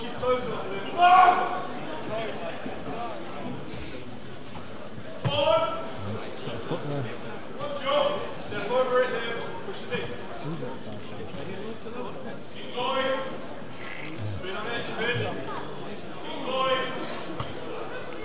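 Men in a crowd shout loud instructions in a large echoing hall.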